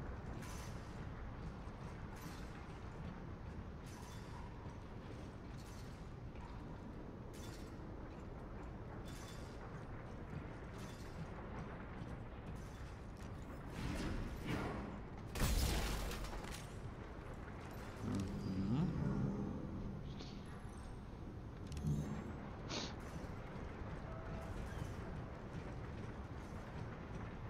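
Heavy boots clank in steps on a metal floor.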